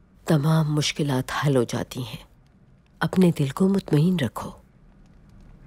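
An older woman speaks calmly, close by.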